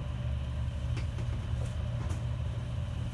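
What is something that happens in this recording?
Small things knock lightly against a plastic tray.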